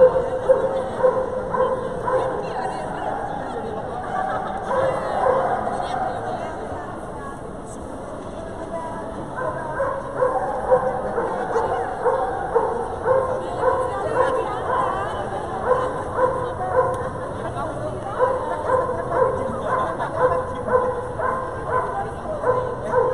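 A seated crowd of men and women chatters in a large echoing hall.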